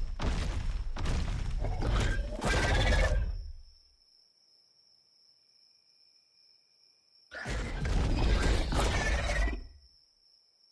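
A large beast moves with a loud, heavy rushing rumble in two bursts.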